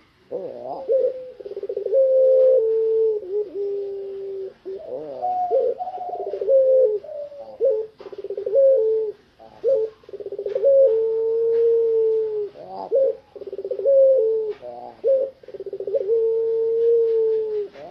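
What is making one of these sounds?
A dove coos loudly and repeatedly, close by.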